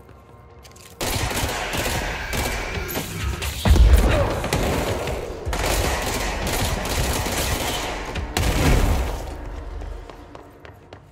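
A pistol fires in quick bursts.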